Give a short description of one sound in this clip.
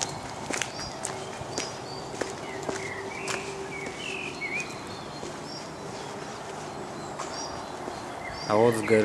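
A river rushes steadily in the distance.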